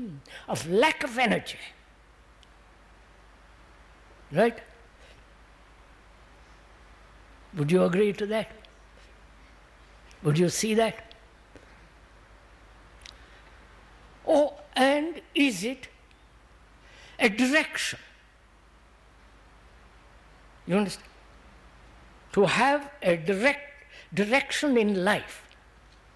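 An elderly man speaks slowly and thoughtfully into a microphone, with long pauses.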